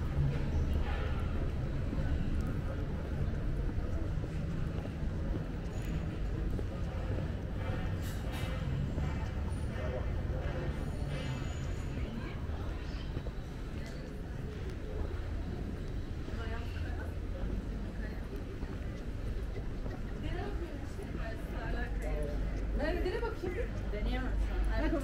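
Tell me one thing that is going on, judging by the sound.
Footsteps scuff on cobblestones.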